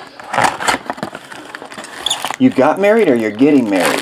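A cardboard box flap is pulled open.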